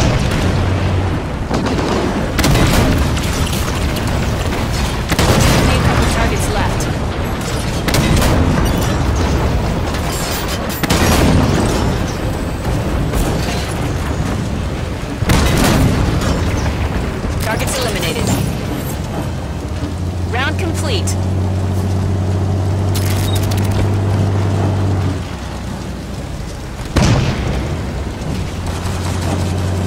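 A tank cannon fires loud booming shots with explosions.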